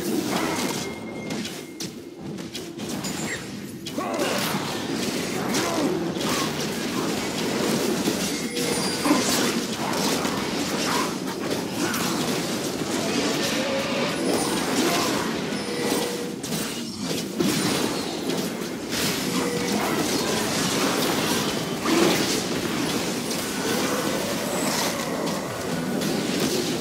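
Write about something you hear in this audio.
Video game battle effects clash and burst with spell blasts and hits.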